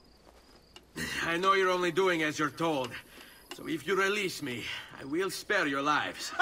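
A young man speaks calmly and firmly.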